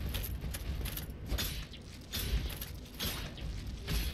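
Metal weapons clash with sharp clangs.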